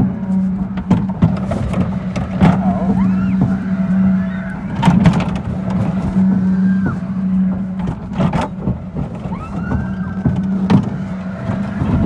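An amusement ride's metal arms clank and creak as they turn.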